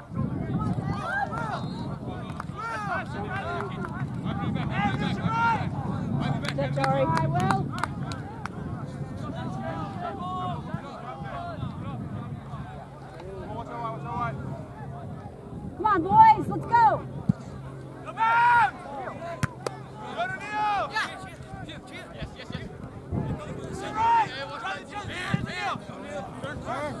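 Young men shout across an open field outdoors.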